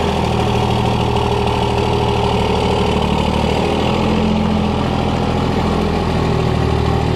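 A diesel truck engine rumbles steadily close by.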